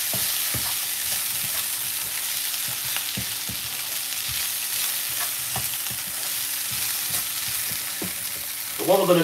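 A wooden spoon scrapes and knocks against a pan as vegetables are stirred.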